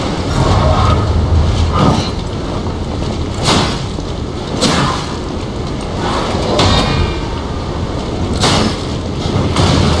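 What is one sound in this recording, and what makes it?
Weapons clash with sharp metallic strikes.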